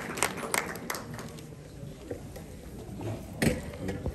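A crowd murmurs quietly in an echoing hall.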